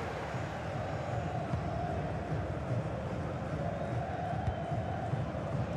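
A stadium crowd roars steadily in a large open space.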